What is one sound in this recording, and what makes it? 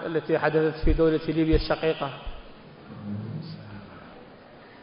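A man speaks firmly into a microphone, amplified through loudspeakers in a large echoing hall.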